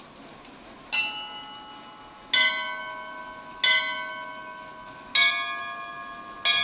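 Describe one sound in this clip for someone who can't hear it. Metal bells ring out one after another, each tone slowly fading.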